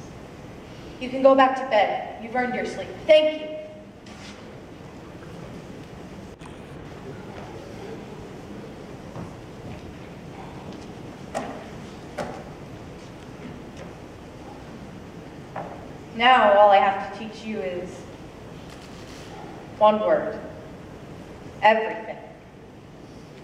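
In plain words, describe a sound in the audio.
A young girl speaks loudly and with animation, heard from a distance in a hall.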